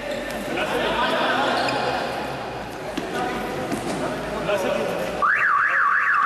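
Young men shout and call out across an echoing indoor hall.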